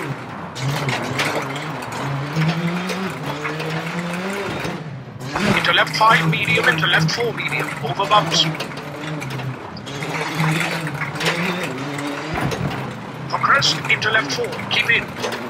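A rally car engine revs hard and shifts through gears.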